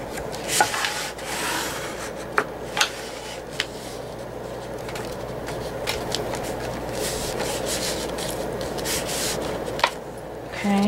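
Hands fold and crease stiff paper on a table.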